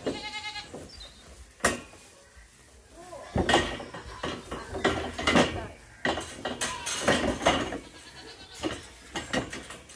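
A large plastic shelter thuds and scrapes as it is moved.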